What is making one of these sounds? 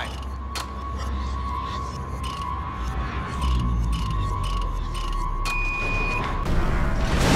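Metal dials click as they turn.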